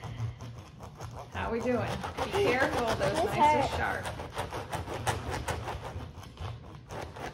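A knife scrapes and snips at an artichoke on a cutting board.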